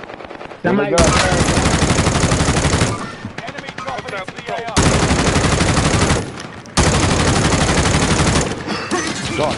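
A rifle fires rapid shots in bursts.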